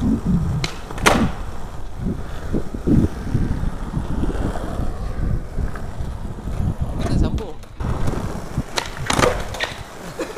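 A skateboard clacks and slaps down on concrete.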